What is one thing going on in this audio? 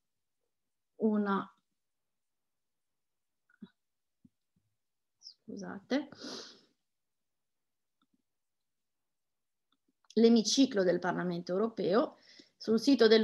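A woman speaks calmly into a close microphone, in short bursts with pauses.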